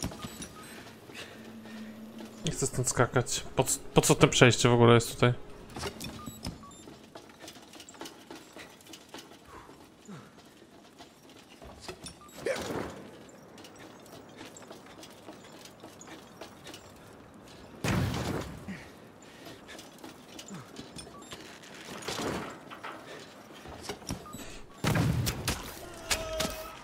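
Footsteps clank on metal walkways.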